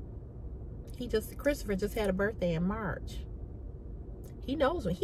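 A woman speaks expressively, close to the microphone.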